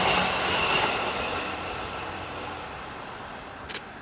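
A train passes close by, its wheels rumbling and clattering on the rails.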